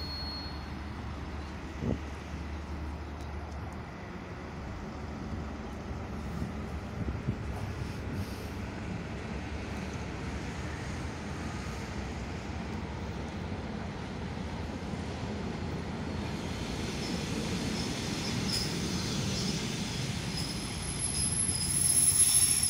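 An electric train rumbles closer along the tracks.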